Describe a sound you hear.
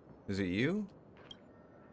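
A young man speaks briefly into a nearby microphone.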